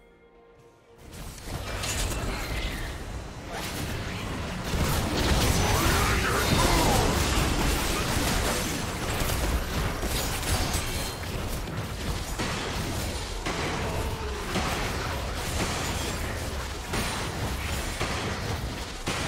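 Game spell effects and combat sounds burst and clash.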